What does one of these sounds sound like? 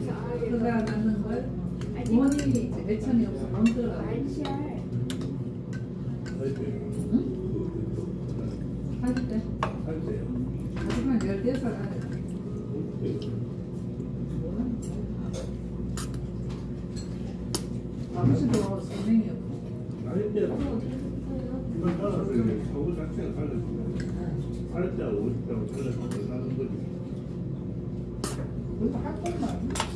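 Voices murmur in the background of a busy room.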